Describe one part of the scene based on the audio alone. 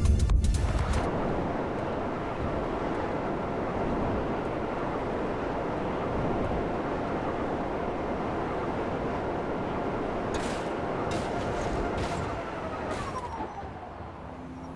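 Wind rushes steadily past a figure falling through the air.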